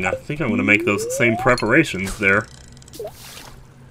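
A fishing line whips out and plops into water.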